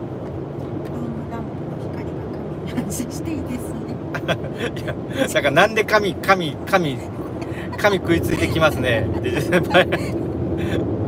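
A man talks cheerfully close by.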